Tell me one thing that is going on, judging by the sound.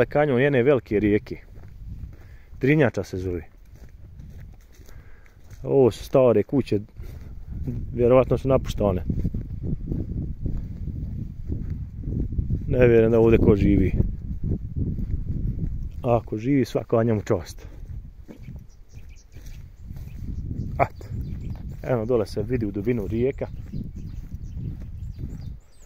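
Footsteps crunch through dry grass.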